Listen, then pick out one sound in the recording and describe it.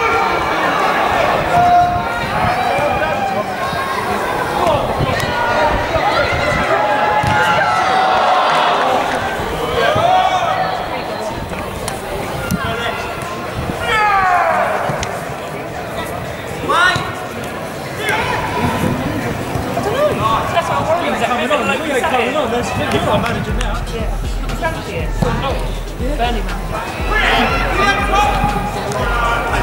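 Young women shout and call to each other across an open, echoing pitch.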